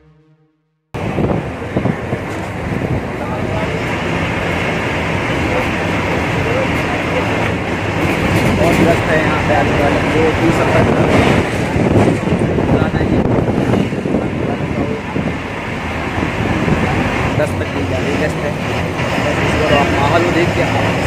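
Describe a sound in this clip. Wind rushes and buffets loudly, as if while riding.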